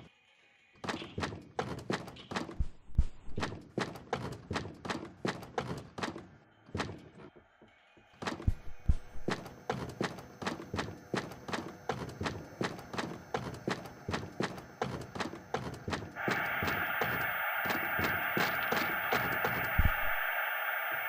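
Small footsteps tap steadily across a wooden floor.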